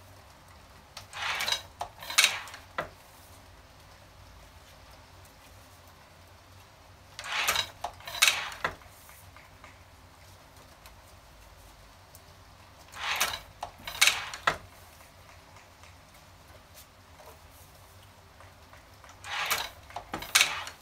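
A hand-operated printing press clanks and thuds as its lever is pulled.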